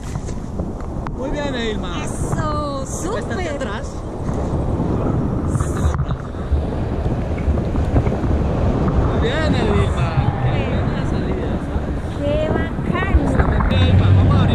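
A young woman laughs and shrieks with excitement close by.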